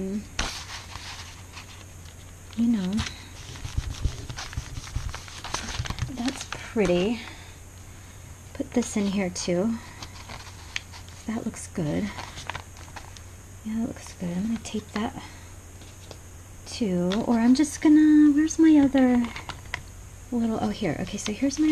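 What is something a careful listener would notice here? Paper rustles and crinkles softly.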